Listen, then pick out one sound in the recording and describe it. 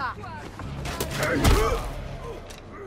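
A heavy club strikes with a loud thud.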